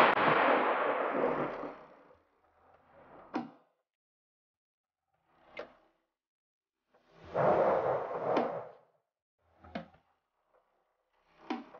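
Short game interface sounds whoosh and click as menus change.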